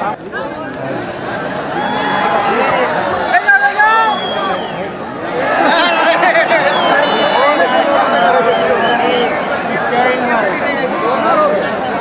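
A large outdoor crowd shouts and cheers excitedly.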